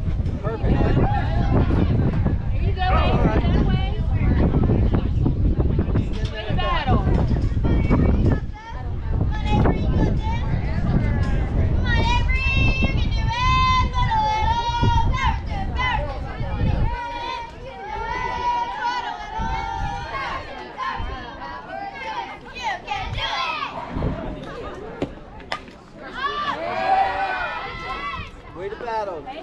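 Young girls shout and cheer across an open field outdoors.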